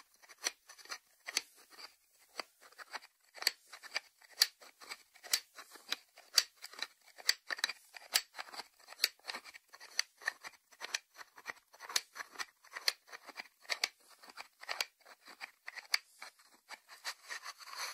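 Fingertips tap on the lid of a small ceramic dish.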